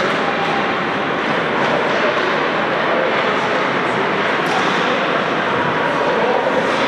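Ice skates scrape and swish across the ice.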